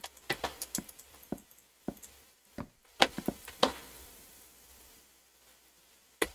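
Footsteps knock on wooden floorboards.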